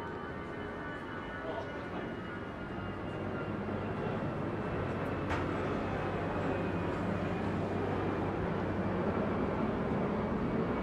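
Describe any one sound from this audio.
Footsteps tread on a stone street outdoors.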